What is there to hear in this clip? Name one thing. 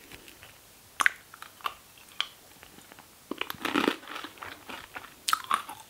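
A young woman chews crunchy chips close to a microphone.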